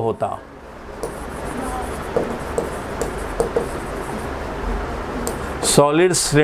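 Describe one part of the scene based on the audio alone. A marker squeaks and taps against a board.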